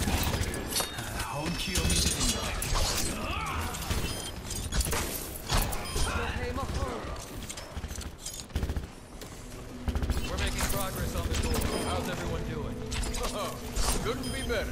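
Gunshots and blasts ring out rapidly in a video game.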